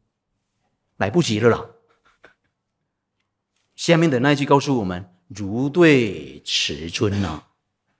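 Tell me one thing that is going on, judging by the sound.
A man speaks calmly and with animation into a microphone, pausing between phrases.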